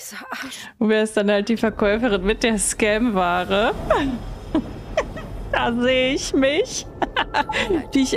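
A young woman talks and laughs with animation close to a microphone.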